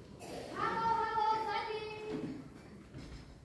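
A child's voice calls out loudly in an echoing hall.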